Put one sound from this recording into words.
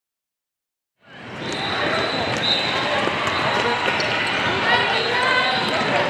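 Sneakers squeak on a hard court in a large echoing gym.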